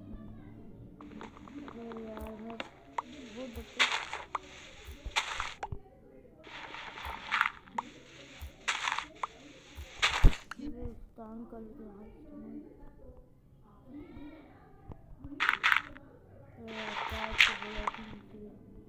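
Blocks crunch and crumble in quick bursts as they are dug away.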